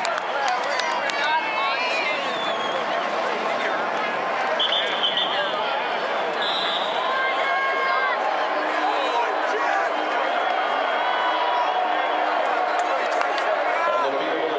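A large stadium crowd cheers and shouts loudly all around.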